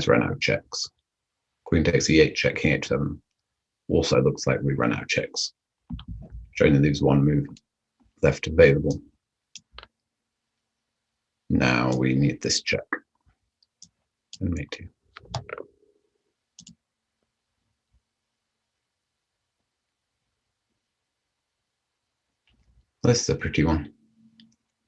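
A man talks calmly into a microphone, with pauses.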